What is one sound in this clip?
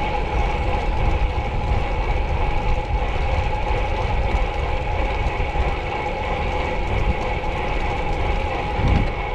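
Bicycle tyres hum steadily on smooth asphalt.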